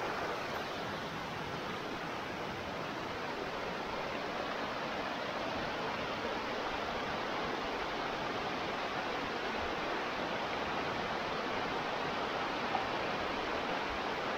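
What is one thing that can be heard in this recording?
A waterfall splashes steadily down over rocks outdoors.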